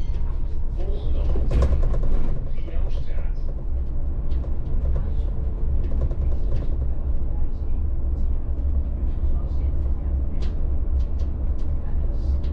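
Loose parts rattle and click inside the bus.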